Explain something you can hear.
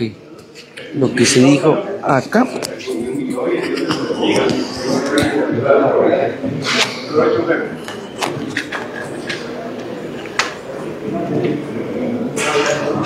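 Several men and a woman talk nearby in an echoing hall.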